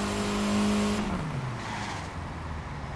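A game car engine winds down as the car slows.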